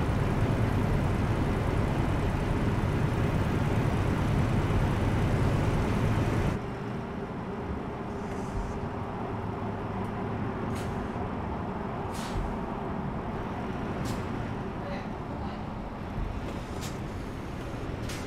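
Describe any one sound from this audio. A diesel truck engine drones from inside the cab, then eases off.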